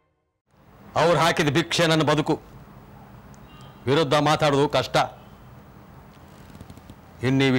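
A middle-aged man speaks close by in a raised, stern voice.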